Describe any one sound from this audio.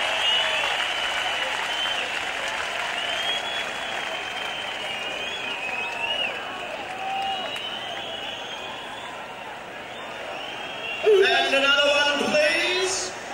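A large crowd cheers, whistles and shouts outdoors.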